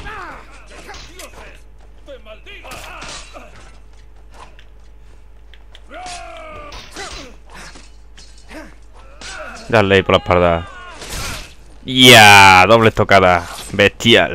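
Steel swords clash and strike in a melee fight.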